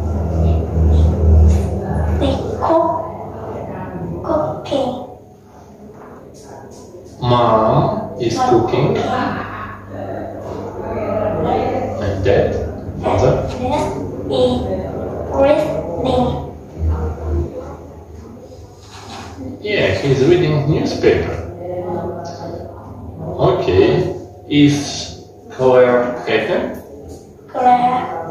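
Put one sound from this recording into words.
A young girl answers in a soft voice, close by.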